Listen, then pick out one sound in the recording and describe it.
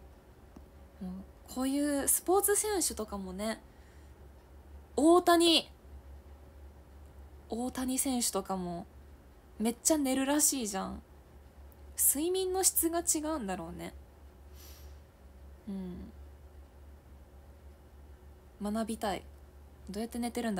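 A young woman talks calmly and closely into a microphone, in short bursts with pauses.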